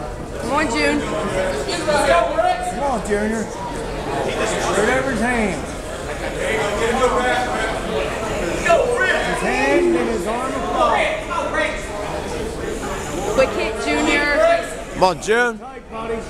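A crowd of men and women shout and cheer excitedly nearby.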